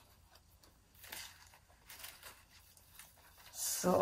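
Leaves and stems rustle in a woman's hands.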